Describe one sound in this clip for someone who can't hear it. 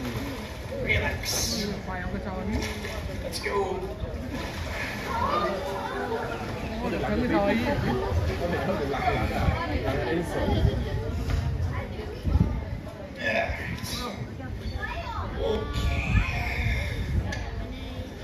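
A crowd of spectators murmurs and chatters nearby.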